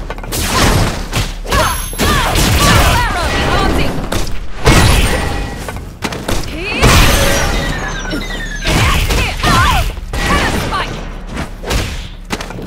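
Game fighters grunt and shout as they attack.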